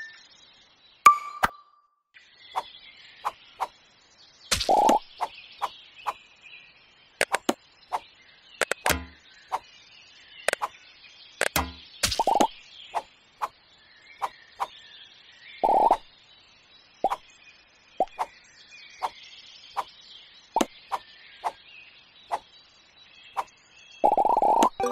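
An axe strikes wood and blocks with short, sharp chops, over and over.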